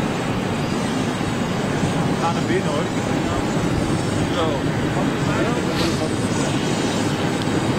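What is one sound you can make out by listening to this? Jet engines whine and roar nearby.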